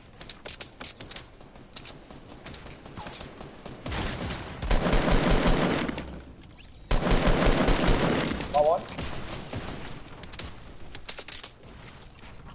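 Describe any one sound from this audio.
Wooden walls snap into place with quick knocks.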